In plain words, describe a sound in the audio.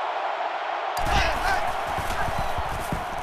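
Football players collide with dull thuds.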